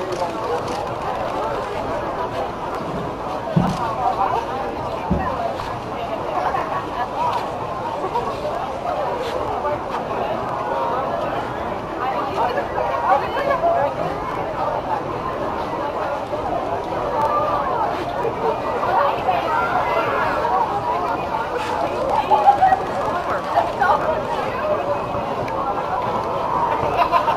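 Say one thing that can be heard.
A crowd of men and women chatter outdoors, with many voices overlapping.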